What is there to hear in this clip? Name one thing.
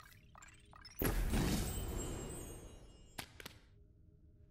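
A sharp electronic whoosh sweeps past as game cards flip out.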